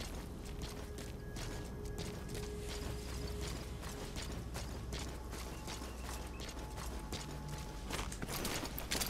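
Footsteps crunch softly on dirt and gravel.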